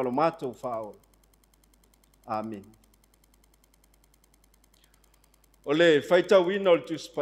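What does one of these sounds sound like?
A middle-aged man speaks calmly through a microphone, with pauses between phrases.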